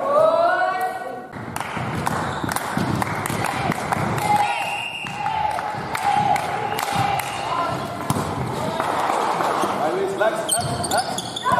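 Young women shout and call out to each other.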